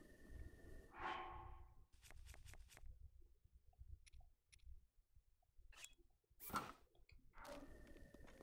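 Game menu clicks and beeps sound briefly.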